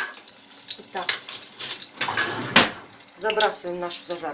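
A bowl clinks as it is picked up from a stovetop.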